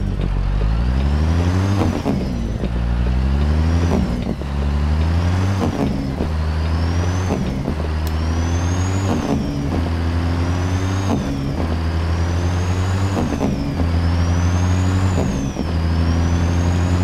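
A truck's diesel engine revs up and drops repeatedly as the gears shift.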